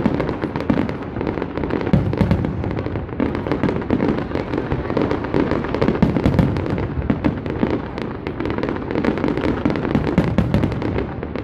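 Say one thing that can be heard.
Fireworks crackle and boom in rapid bursts outdoors.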